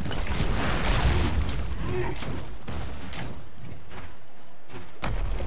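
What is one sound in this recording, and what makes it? Game weapons strike and thud in a fast fight.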